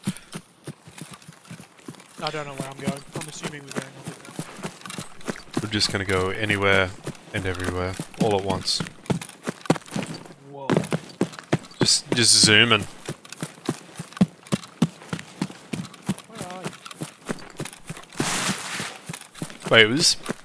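Footsteps tread steadily through grass and gravel.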